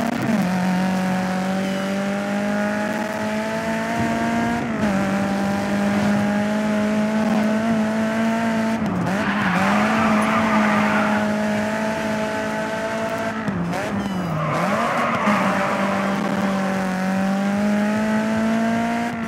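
A racing car engine roars at high revs, climbing through the gears.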